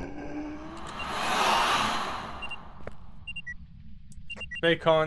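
A handheld electronic meter beeps with short high tones.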